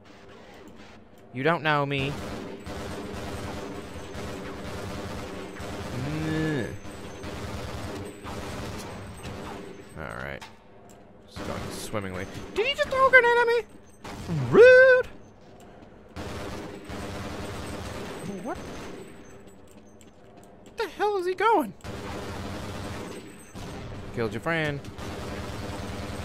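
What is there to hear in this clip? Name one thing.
A rifle fires in short bursts.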